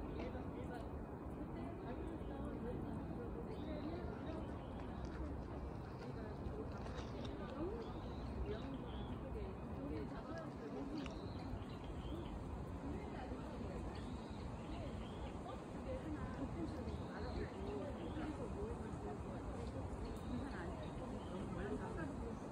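Leaves rustle softly in a light breeze.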